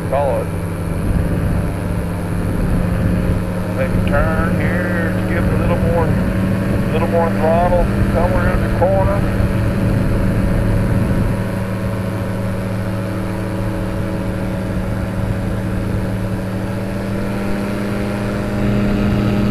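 A small drone's motors hum and whine steadily close by.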